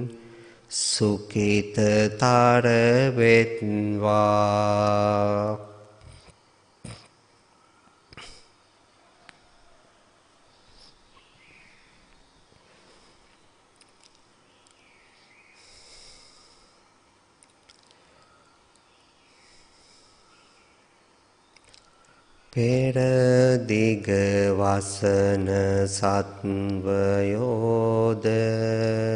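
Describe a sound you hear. A man chants in a slow, drawn-out voice through a microphone.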